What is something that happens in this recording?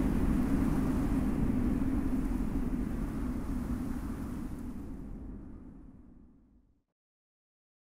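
A small fire crackles softly and fades away into silence.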